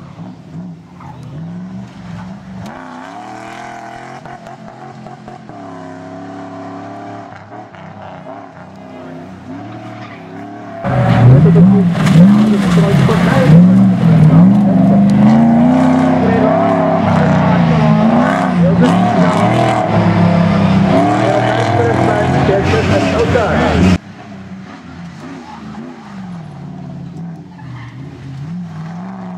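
A rally car engine revs hard and roars as it accelerates.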